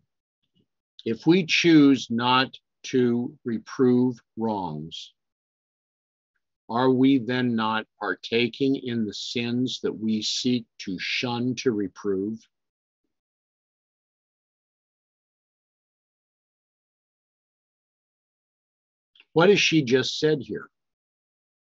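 An older man speaks calmly and close to a microphone, in pauses.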